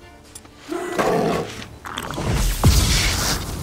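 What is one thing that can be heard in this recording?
A large beast snarls and roars.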